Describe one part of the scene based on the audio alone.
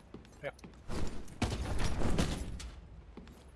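A character scrambles up over a ledge with a scuffing thud.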